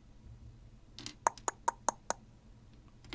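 Plastic toy bricks click and rattle as they are handled.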